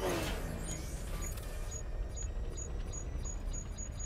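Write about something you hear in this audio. Laser guns whine and warble in bursts.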